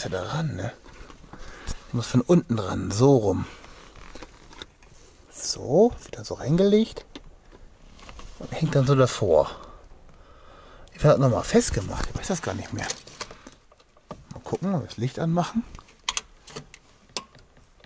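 Plastic parts click and rattle softly as hands handle them.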